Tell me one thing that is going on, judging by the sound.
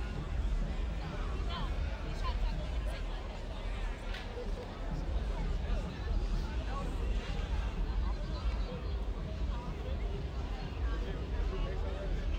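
A crowd of young people chatters outdoors on a busy street.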